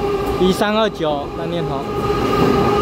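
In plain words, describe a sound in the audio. A locomotive horn sounds loudly, in short blasts.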